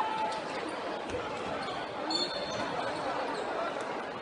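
A basketball bounces on the court.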